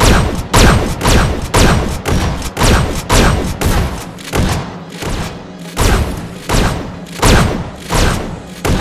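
Electric zaps crackle and boom in quick succession.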